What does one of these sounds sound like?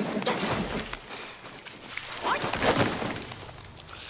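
A body thuds onto the ground.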